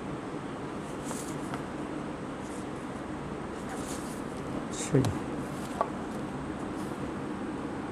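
Papers rustle as pages are turned.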